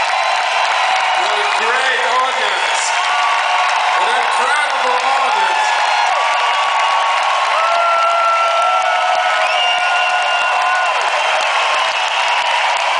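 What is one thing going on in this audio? A large crowd cheers and screams loudly.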